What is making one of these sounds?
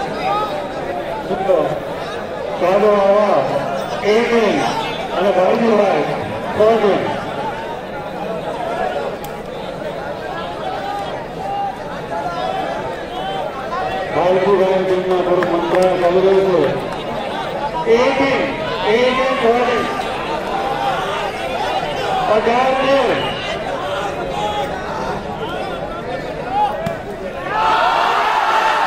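A large outdoor crowd chatters and calls out throughout.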